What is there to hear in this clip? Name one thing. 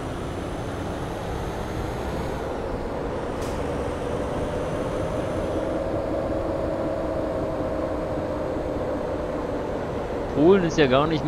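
Tyres hum on a road.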